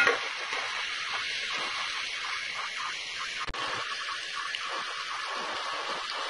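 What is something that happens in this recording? Onions sizzle and crackle in hot oil.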